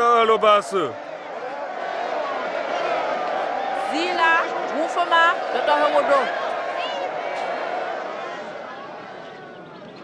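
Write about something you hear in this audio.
A crowd of men and women cheers and shouts outdoors.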